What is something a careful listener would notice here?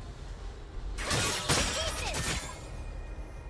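Crackling, whooshing game spell effects burst out in a short flurry.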